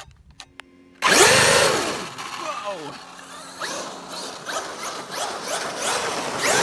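An electric motor whines loudly, rising and falling in pitch.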